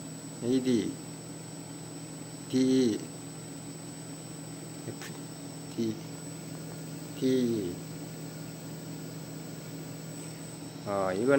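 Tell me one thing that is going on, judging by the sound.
An electronic unit hums steadily.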